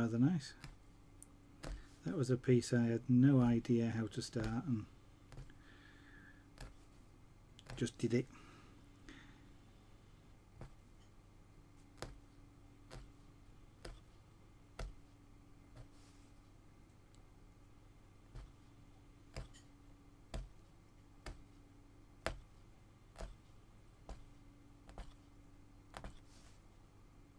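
A punch needle taps rhythmically through stretched cloth.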